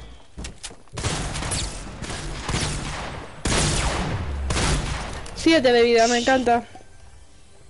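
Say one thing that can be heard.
Gunshots fire in quick bursts, close by.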